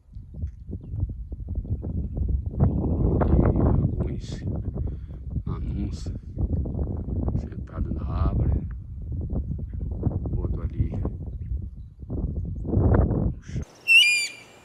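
Wind gusts loudly and roughly outdoors.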